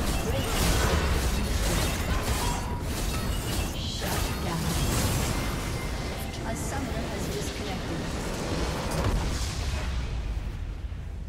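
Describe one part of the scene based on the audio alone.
Game spells and attacks crash and blast in a busy fight.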